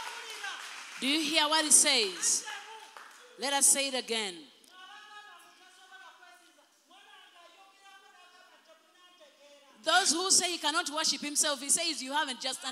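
A second woman sings into a microphone through loudspeakers.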